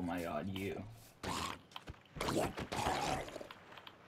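A sword strikes a creature with sharp thuds.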